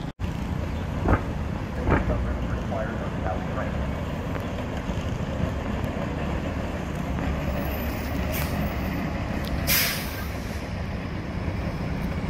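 A city bus drives past with a low engine rumble.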